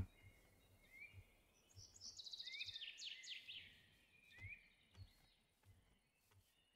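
Footsteps crunch softly through grass.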